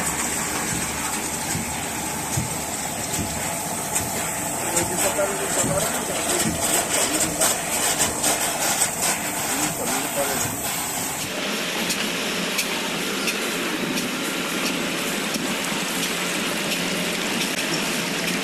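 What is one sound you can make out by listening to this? Water splashes steadily from a row of nozzles into a tank.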